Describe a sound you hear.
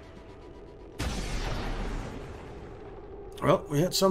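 An energy weapon fires with a loud burst.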